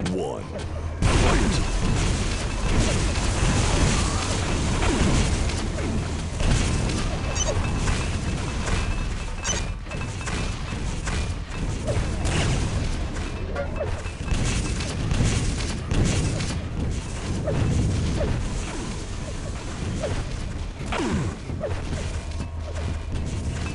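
Rapid video game gunfire and blasts ring out.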